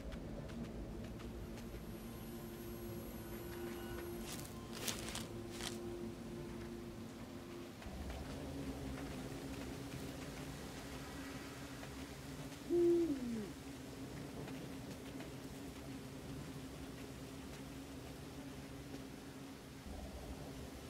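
A small animal's paws patter softly over the ground.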